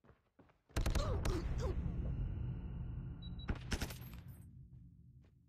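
Gunshots ring out in a game.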